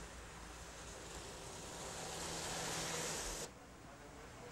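A military vehicle drives past, its engine and tyres growing louder.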